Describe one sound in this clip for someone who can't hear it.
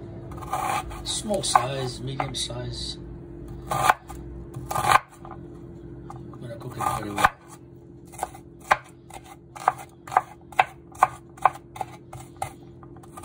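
A knife chops an onion against a wooden board with quick, regular knocks.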